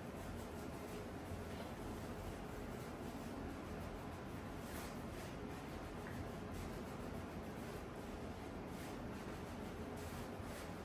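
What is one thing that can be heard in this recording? Fingers rub and squelch through soapy, lathered hair close by.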